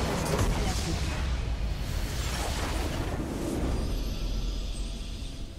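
Game battle effects crash and explode loudly.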